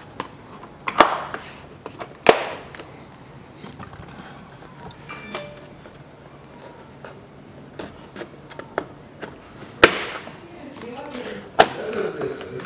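Hands knock and tap against a car door frame.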